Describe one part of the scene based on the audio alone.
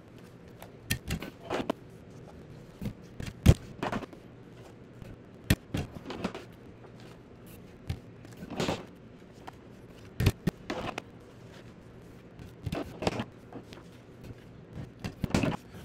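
A stapler clicks shut with sharp snaps.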